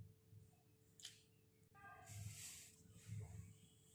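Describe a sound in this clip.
Paper rustles as a sheet is handled.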